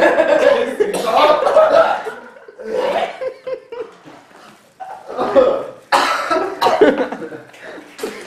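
A young man coughs and gags.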